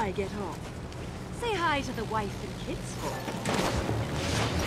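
A young woman calls out playfully, close by.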